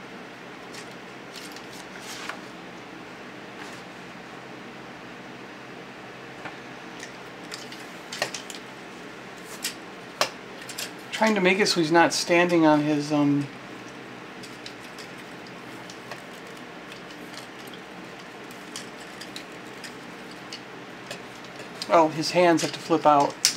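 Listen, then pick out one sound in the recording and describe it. Plastic toy parts click and snap as they are twisted into place.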